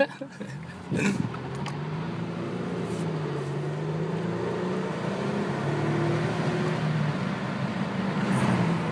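A car engine hums and rises as the car speeds up.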